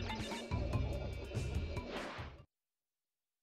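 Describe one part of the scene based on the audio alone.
Lively game music plays with bouncy sound effects, then cuts off.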